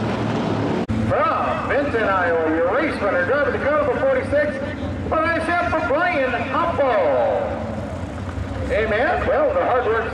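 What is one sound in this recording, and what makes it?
A man speaks with animation over a loudspeaker.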